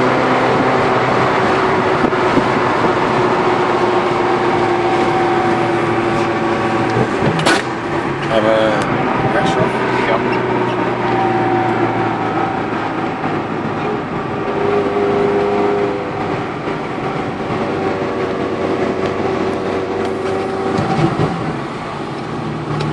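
Wind rushes past the moving car.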